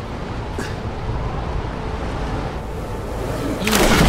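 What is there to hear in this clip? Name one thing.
Wind rushes past during a long fall.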